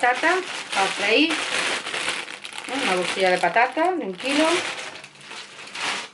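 A plastic snack bag crinkles in a woman's hands.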